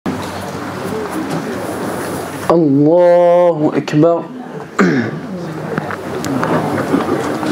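A crowd of men murmurs and shuffles about.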